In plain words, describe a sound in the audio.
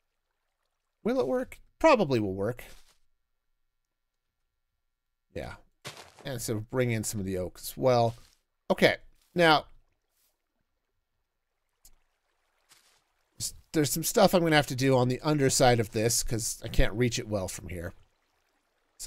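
A middle-aged man talks casually into a close microphone, in bursts with pauses.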